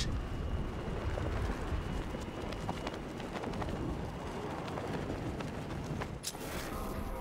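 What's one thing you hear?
Wind rushes loudly past in a steady roar.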